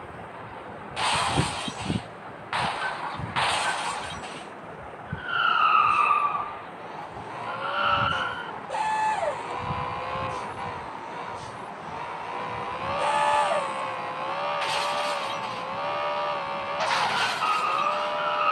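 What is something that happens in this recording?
Tyres skid and screech on the ground.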